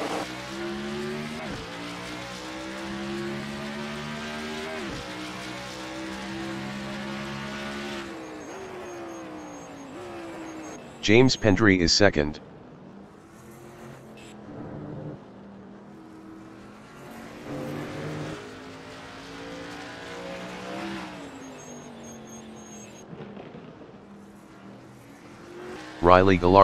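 A racing car engine roars steadily at high speed, its pitch shifting as it changes gear.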